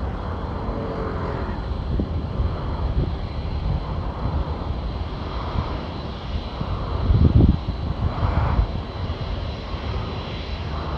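A distant jet engine roars steadily.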